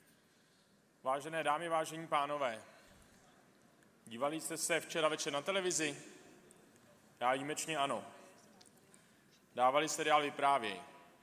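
A man speaks through a microphone in short bursts, with pauses between.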